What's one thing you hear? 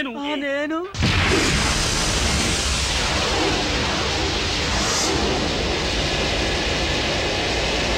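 Traffic roars past on a busy road.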